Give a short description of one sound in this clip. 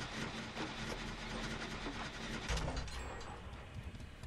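A machine rattles and clatters.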